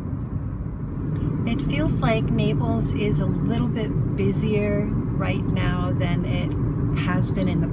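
A middle-aged woman talks close by, calmly, inside a car.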